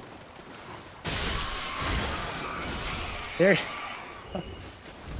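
A loud rushing clash of weapons in a game sounds out.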